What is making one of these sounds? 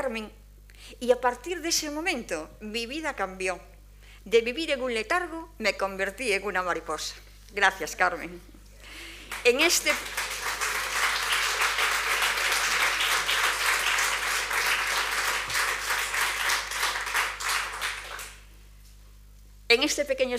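An older woman speaks calmly into a microphone.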